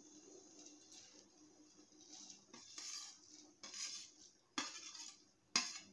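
Dry noodles rustle and crackle as they drop into a pot.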